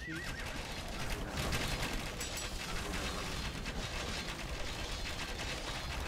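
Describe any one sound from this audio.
Swords clash in a busy battle.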